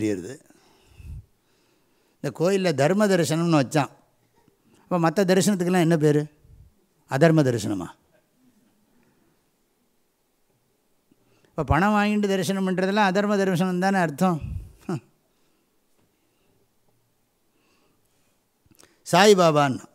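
An elderly man chants slowly into a microphone in a melodic voice, with pauses between phrases.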